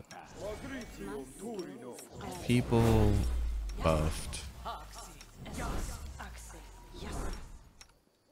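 A magic spell hums and shimmers with a bright ringing burst.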